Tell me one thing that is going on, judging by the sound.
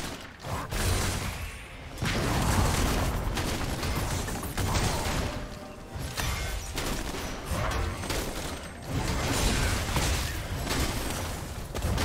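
Game weapon hits clash and thud rapidly.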